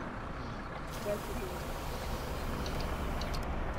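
A bus door hisses and closes.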